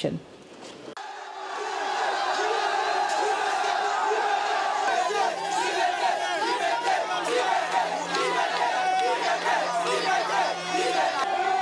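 A large crowd of young men shouts and chants loudly outdoors.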